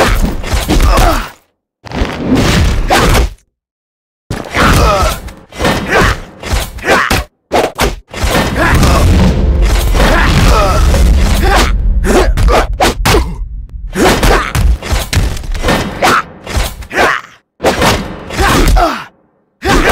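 Weapons clash and blows land with heavy thuds.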